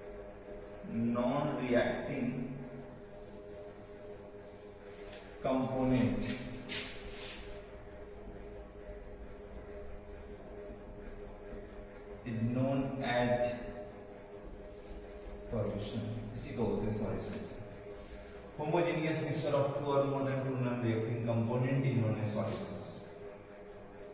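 A man speaks in a calm, explaining voice nearby, in short bursts with pauses.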